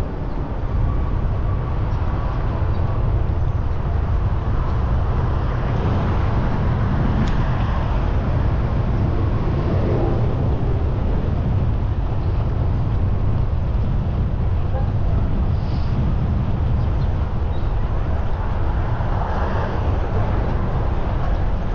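Wind rushes and buffets loudly past.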